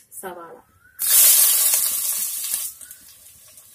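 Chopped onions drop into hot oil with a loud, sudden sizzle.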